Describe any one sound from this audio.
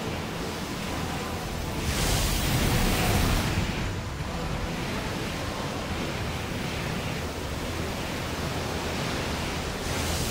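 A mech's jet thrusters roar as it skims over water.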